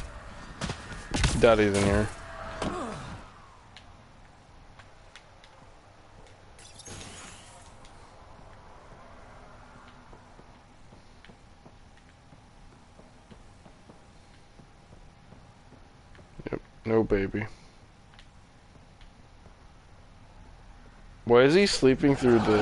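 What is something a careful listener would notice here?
Footsteps tap on a hard metal floor.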